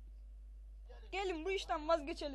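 An elderly man speaks slowly, heard through a television speaker.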